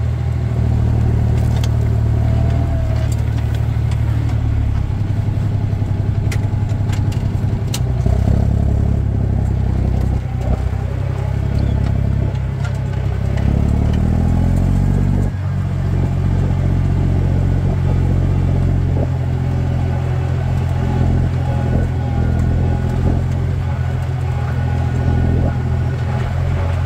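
A plough scrapes and tears through soil and turf.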